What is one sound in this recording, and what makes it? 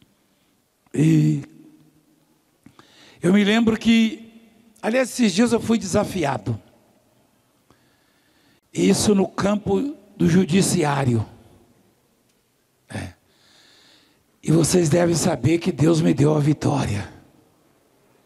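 A man preaches with animation into a microphone, his voice booming through loudspeakers in a large hall.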